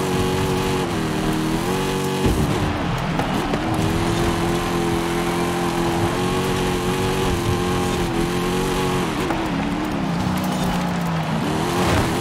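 Tyres crunch and rumble over a dirt track.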